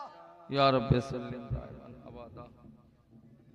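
A young man speaks loudly through a microphone.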